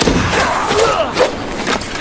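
A fiery blast bursts with a crackle.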